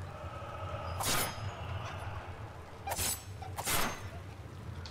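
A pistol fires several loud shots.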